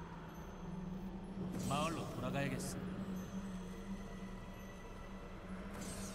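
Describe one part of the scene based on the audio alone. Magical spell effects crackle and whoosh.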